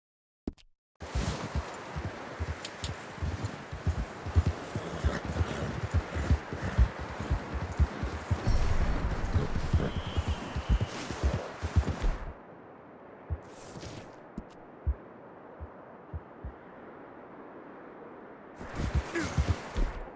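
A horse's hooves thud and crunch through deep snow at a steady pace.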